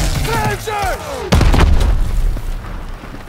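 A flamethrower roars loudly.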